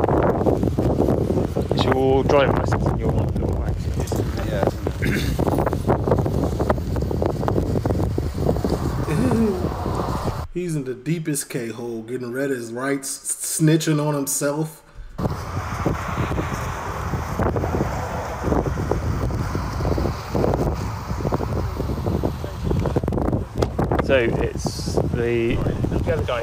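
A man speaks outdoors with a firm voice.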